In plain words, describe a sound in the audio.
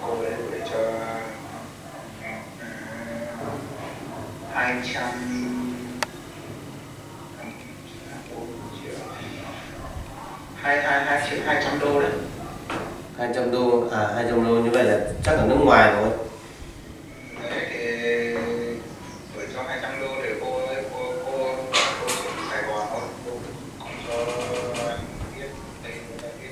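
A young girl answers softly nearby.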